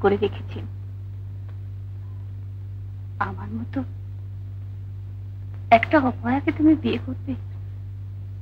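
A middle-aged woman speaks earnestly, close by.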